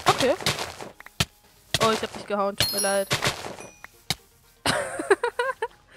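Sharp hits land in quick succession.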